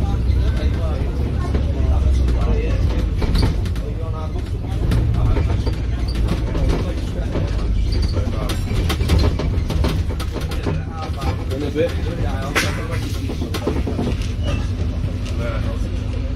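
A bus engine rumbles low and steady while driving along a street.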